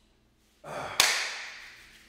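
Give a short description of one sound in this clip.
A man claps his hands once.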